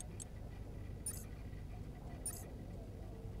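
Short electronic menu clicks sound as options are selected.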